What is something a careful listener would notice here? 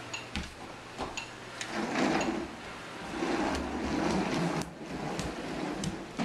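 Plastic toy wheels rumble over a wooden floor.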